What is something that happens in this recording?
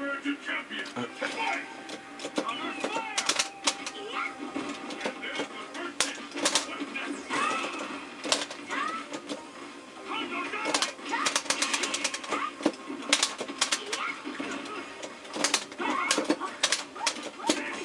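Punches, kicks and blasts thud and crack in quick bursts.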